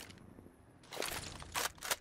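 A grenade is tossed with a short whoosh.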